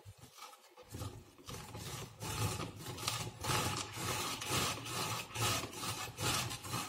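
A hand-cranked grater rasps as it shreds a carrot.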